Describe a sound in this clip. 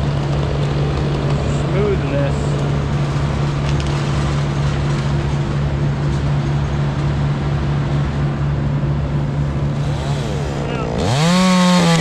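A crane's diesel engine hums steadily nearby.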